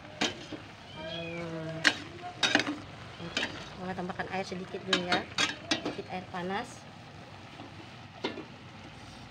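A metal spatula scrapes and clanks against a pan.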